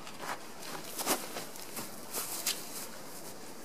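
Footsteps crunch on dry mulch close by.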